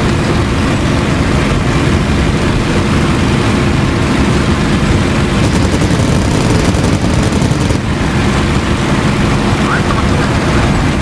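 Wind rushes past an aircraft cockpit.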